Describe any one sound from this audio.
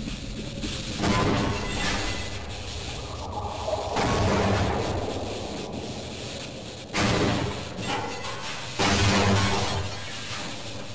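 Electric beams crackle and zap loudly.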